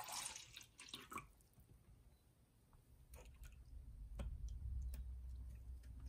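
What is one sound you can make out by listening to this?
Water pours and splashes into a glass.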